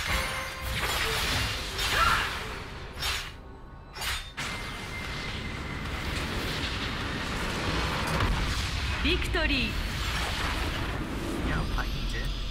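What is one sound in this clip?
Video game battle sounds crackle and burst in a dense, busy mix.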